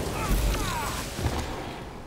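A fiery explosion booms.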